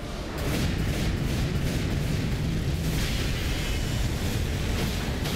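A deep rumbling roar of energy surges and crackles.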